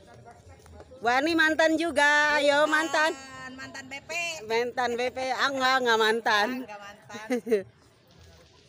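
A middle-aged woman speaks with animation close to a phone microphone.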